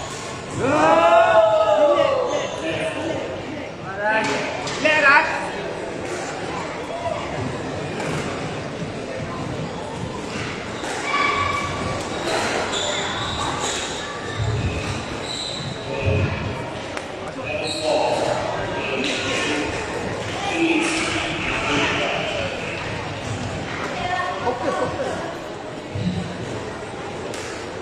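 A squash ball smacks against rackets and walls in an echoing court.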